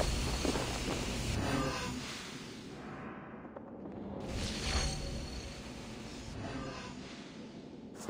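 A magical orb hums and shimmers.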